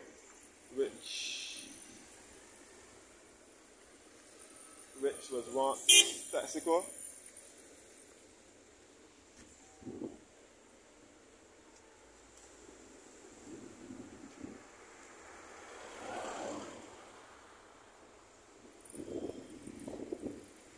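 Cars drive past on a nearby road, one after another.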